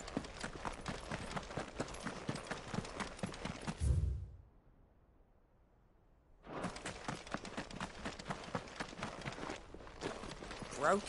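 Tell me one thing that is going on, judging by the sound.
Quick footsteps crunch on gravelly sand.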